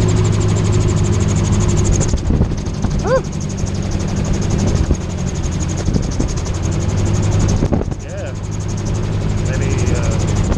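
An aircraft engine drones steadily close by.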